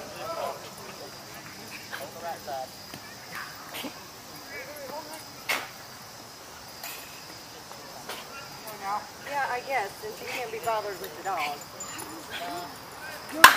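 Men call out and chat outdoors.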